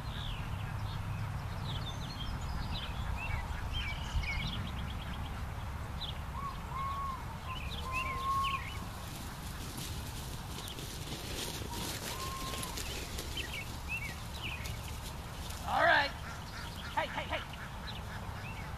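Wind rumbles outdoors in an open field.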